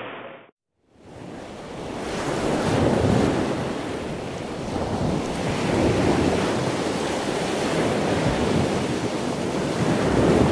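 Water churns and flows steadily in a tank.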